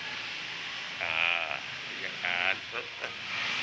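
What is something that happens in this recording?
A man talks close by in a large echoing space.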